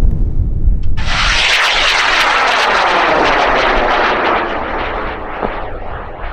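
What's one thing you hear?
A rocket roars as it climbs away, slowly fading.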